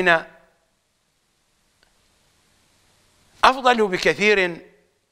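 An elderly man speaks calmly and expressively into a microphone.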